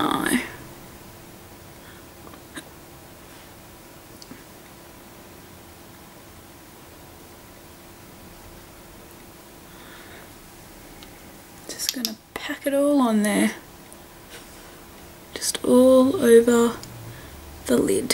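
A young woman speaks calmly close to the microphone.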